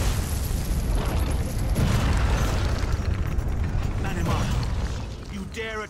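Weapons clash in a fight.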